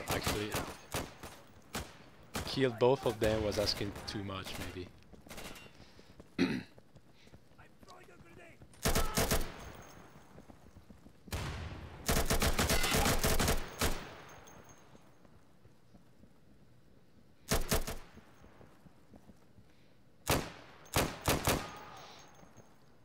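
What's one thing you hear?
Rifle fire rings out in loud bursts and short shots.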